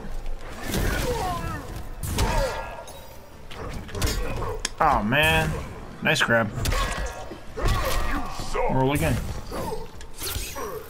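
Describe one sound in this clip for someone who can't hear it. Heavy punches and kicks land with loud thuds and cracks.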